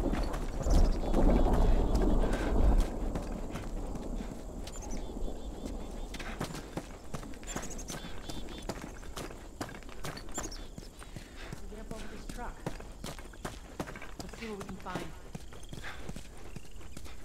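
Footsteps crunch on gravel and debris.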